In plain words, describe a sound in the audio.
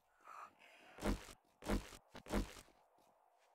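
A pickaxe strikes with heavy thuds.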